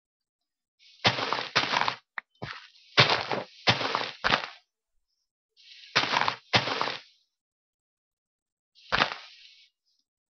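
Leaves rustle and crunch in short bursts as they are broken.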